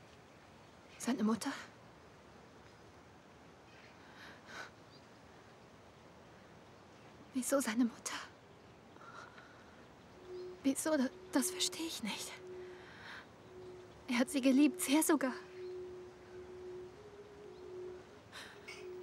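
A young woman speaks quietly and tearfully, close by.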